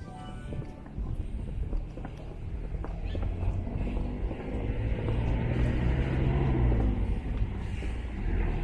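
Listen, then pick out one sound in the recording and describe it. A car approaches along the street with a rising rumble.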